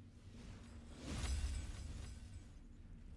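A bright game chime rings out.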